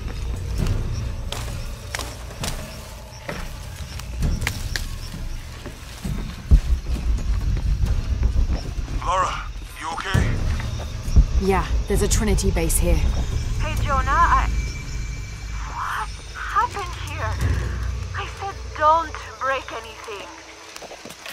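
Footsteps crunch on dirt and wooden planks.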